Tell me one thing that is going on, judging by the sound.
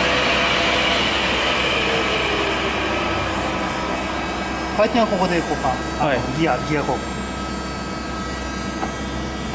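A large machine hums and whirs steadily.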